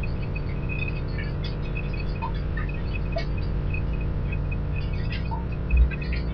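Water trickles and flows nearby.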